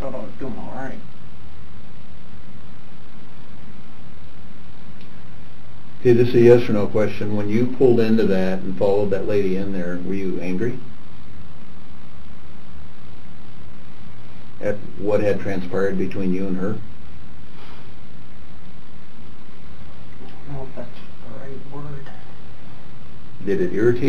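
A young man speaks quietly and hesitantly.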